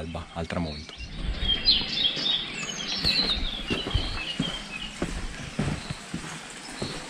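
Footsteps scuff on stone while walking.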